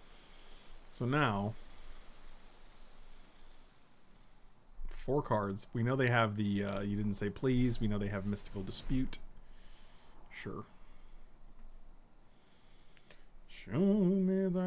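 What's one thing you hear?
A middle-aged man speaks casually into a microphone.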